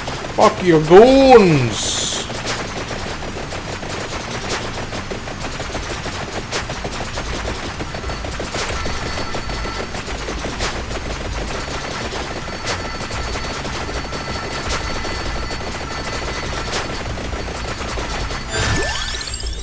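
Video game sound effects patter and click rapidly.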